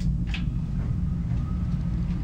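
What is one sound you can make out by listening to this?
A computer fan starts up and whirs softly.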